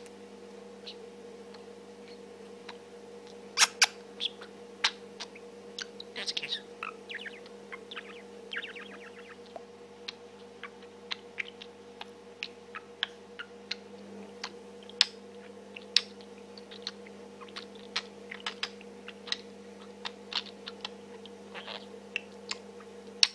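A budgie chirps and chatters close by with quick, sharp clicks and warbles.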